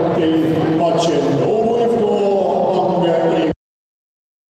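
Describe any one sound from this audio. A group of men chant and sing together in a large echoing hall.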